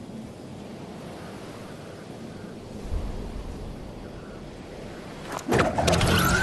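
Wind rushes steadily past a falling game character.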